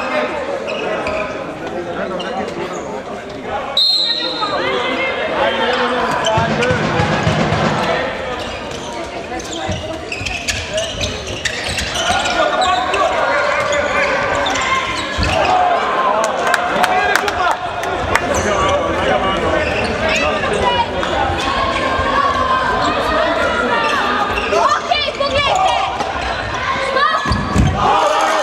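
A crowd of spectators murmurs and cheers in a large echoing hall.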